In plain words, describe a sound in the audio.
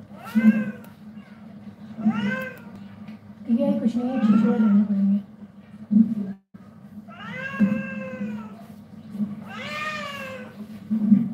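A cat meows repeatedly and loudly, close by.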